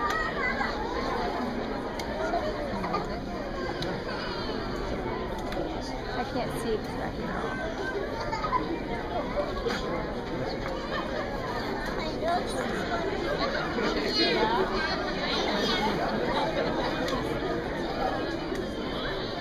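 Young children chatter and babble in a busy hall.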